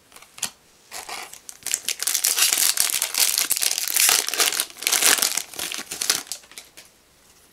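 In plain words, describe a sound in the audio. A foil booster pack crinkles as it is torn open.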